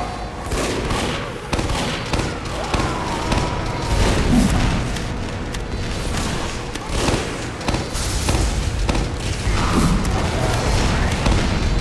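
A grenade launcher fires with heavy thumps.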